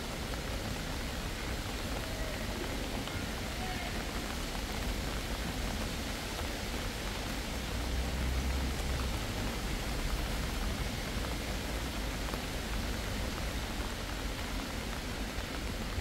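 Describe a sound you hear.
Light rain patters steadily outdoors.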